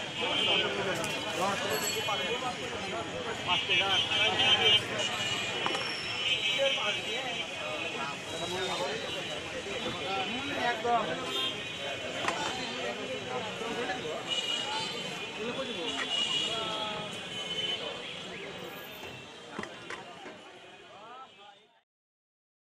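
A busy crowd of men chatters nearby outdoors.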